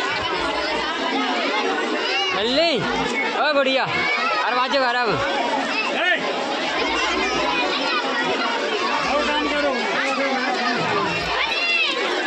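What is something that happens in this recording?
A large crowd of children chatters and shouts loudly outdoors, close by.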